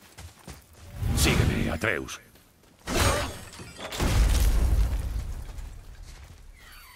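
A heavy wooden gate bangs and rattles with chains.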